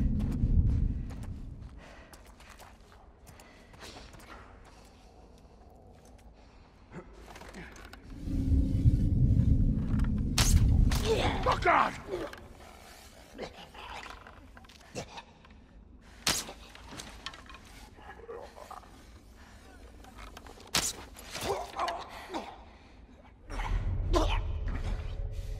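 Footsteps shuffle softly on a gritty floor.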